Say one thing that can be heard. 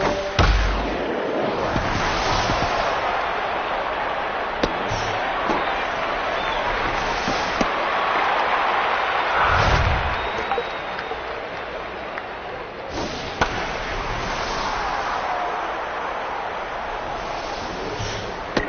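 A crowd cheers and murmurs steadily in a large stadium.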